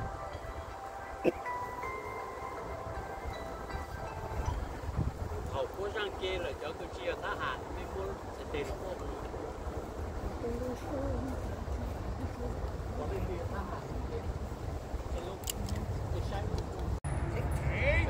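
A man speaks calmly outdoors.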